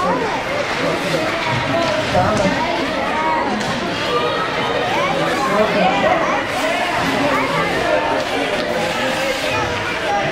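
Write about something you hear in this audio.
Hockey sticks clack on the ice.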